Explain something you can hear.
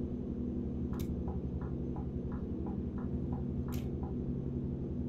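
A turn signal ticks rhythmically.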